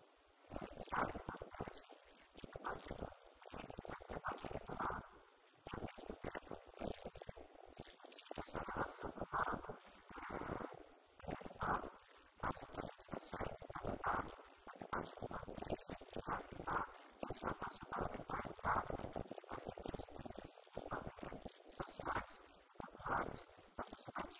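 A man speaks steadily into a microphone, heard through a loudspeaker in an echoing room.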